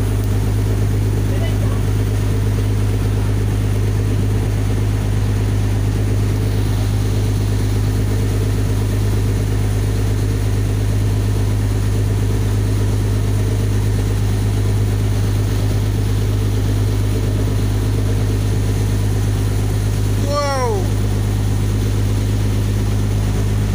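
Water rushes along a moving boat's hull.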